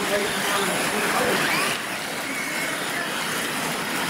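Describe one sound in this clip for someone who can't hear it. A small electric motor whines and revs as a toy truck speeds over dirt.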